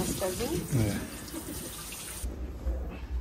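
Water splashes and trickles over feet.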